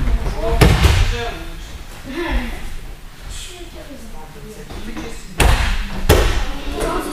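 A body thuds hard onto a mat.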